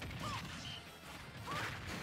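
Cartoonish punches and impact effects thump during a fight in a video game.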